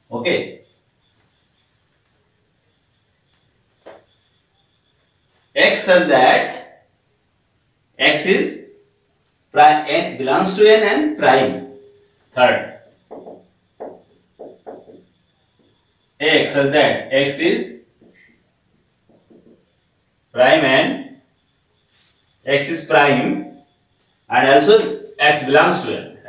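A man explains calmly in short bursts, close to a microphone, with pauses between phrases.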